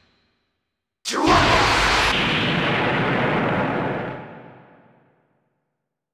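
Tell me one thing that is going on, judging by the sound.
A video game energy beam fires with a roaring blast.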